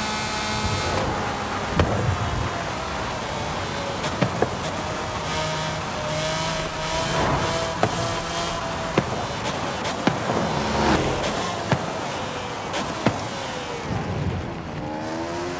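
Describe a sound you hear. A sports car engine winds down through the gears as the car brakes.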